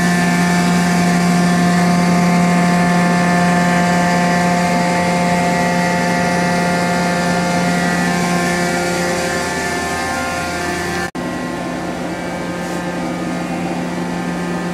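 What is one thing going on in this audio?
A large machine hums and whines steadily.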